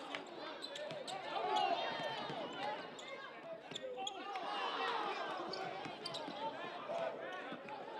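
A crowd of spectators cheers, in a large echoing gym.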